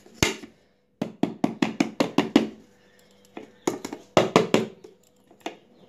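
A metal tin taps repeatedly against a plate.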